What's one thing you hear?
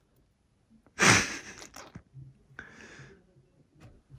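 A bottle cap pops open with a hiss.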